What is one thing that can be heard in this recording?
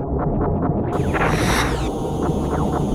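Explosions burst with a crackling roar.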